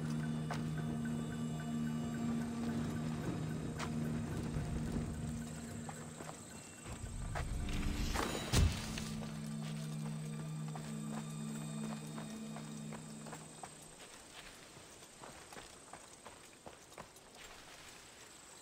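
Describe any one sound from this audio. Footsteps rustle softly through dry grass.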